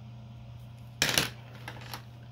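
Pencils clack against each other in a case.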